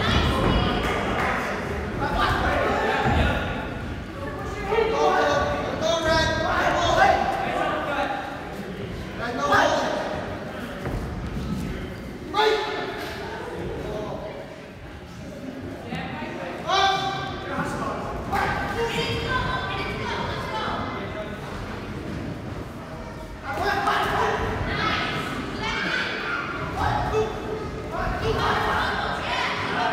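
Spectators shout encouragement in a large echoing hall.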